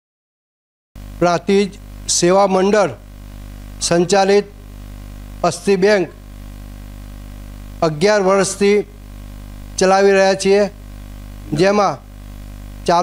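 An older man speaks calmly and steadily into microphones close by.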